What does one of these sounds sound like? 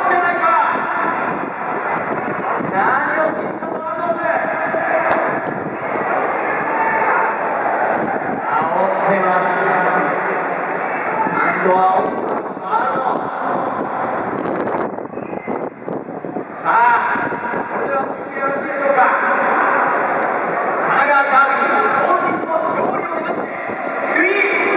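A large stadium crowd sings and chants loudly in unison, echoing across the open air.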